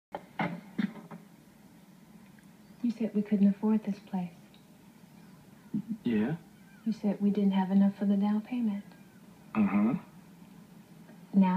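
A woman speaks calmly, heard through a television speaker.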